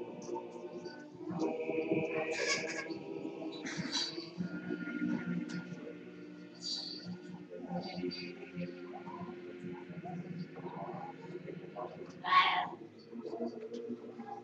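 Several voices sing a slow chant together in a large echoing hall.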